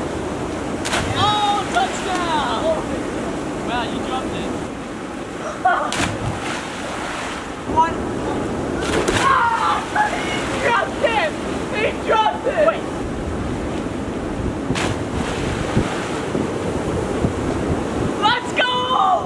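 Young men shout and whoop outdoors.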